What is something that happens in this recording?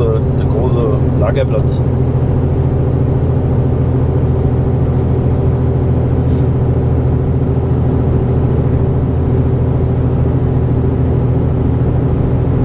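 Tyres roll on the road with a steady rumble.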